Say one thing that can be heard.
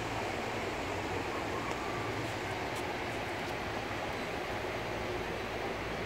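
Wind buffets the microphone steadily outdoors.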